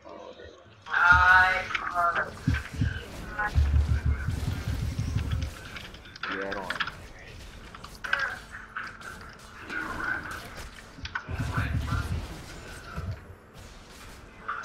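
Game spell blasts and weapon hits clash in a fight.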